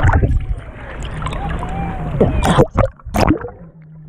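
Water splashes as the surface breaks.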